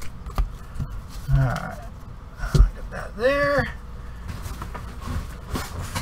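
Hands shuffle and tap a stack of cards.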